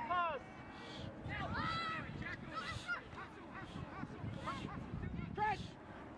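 Young players and spectators shout and call out in high voices outdoors.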